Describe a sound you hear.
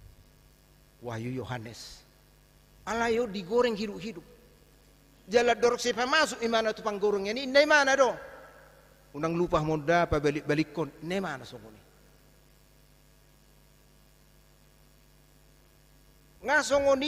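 A man preaches through a microphone, speaking in short bursts with pauses.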